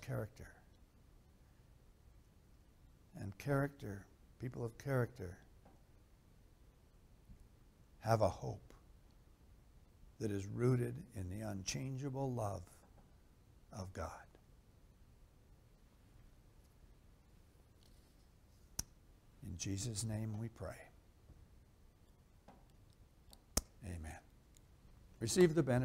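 A middle-aged man reads aloud slowly and calmly through a microphone, with pauses between phrases.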